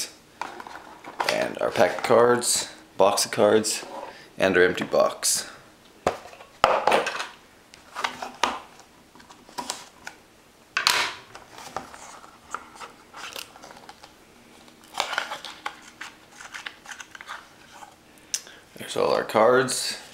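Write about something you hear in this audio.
Cardboard packs and cards tap and slide on a table.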